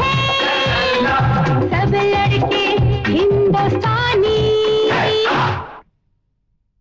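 Upbeat dance music plays loudly with singing.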